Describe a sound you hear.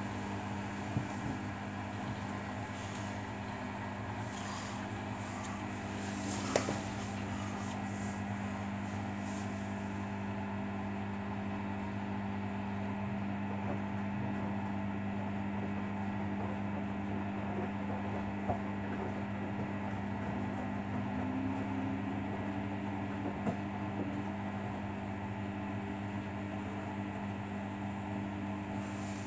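Wet laundry tumbles and sloshes inside a washing machine drum.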